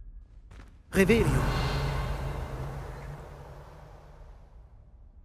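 A magic spell bursts with a loud whoosh and slowly fades.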